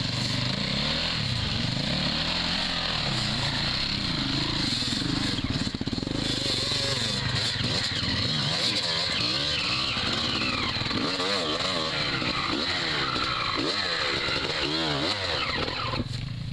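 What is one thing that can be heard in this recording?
A dirt bike engine revs loudly close by, rising and falling in pitch.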